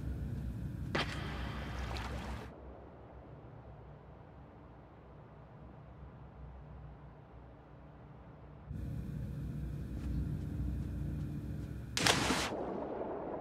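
A body plunges into deep water with a heavy splash.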